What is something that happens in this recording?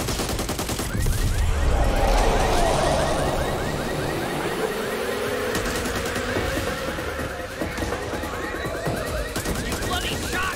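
A car alarm blares with a repeating, rising and falling wail.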